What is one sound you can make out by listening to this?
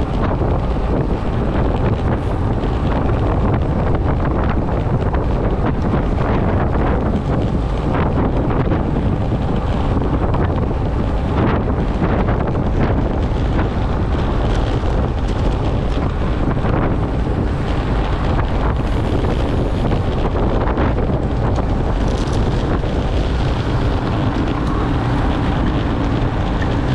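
Bicycle tyres hum steadily on the road surface.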